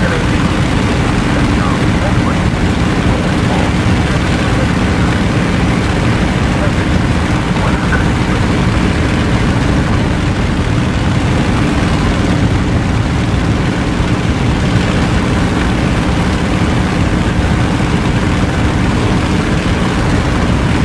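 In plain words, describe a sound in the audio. A propeller aircraft engine drones steadily at close range.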